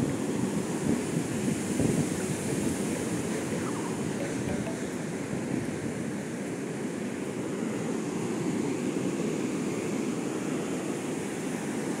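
Waves roar steadily as they break on a nearby shore.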